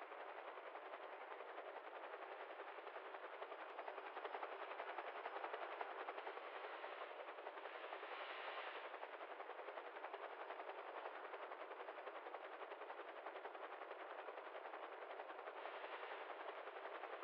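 A helicopter's rotor chops steadily and rapidly.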